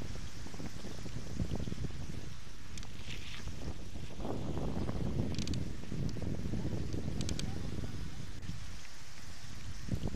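Wind buffets a microphone on a bicycle riding downhill at speed.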